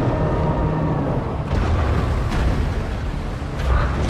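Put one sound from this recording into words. A launcher fires with a loud boom.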